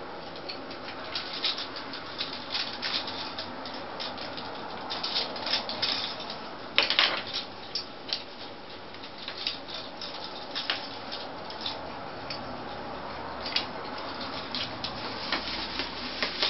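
Parrots crack and click their beaks on a plastic toy.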